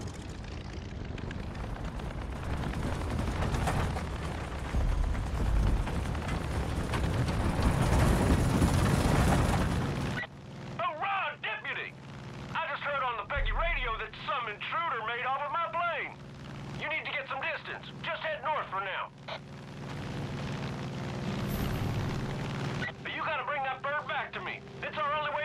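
A small propeller plane engine roars loudly, then settles into a steady drone.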